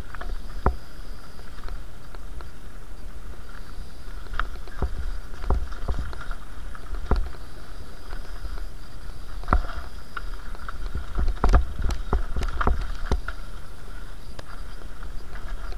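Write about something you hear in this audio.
Bicycle tyres roll and crunch over a rough dirt trail.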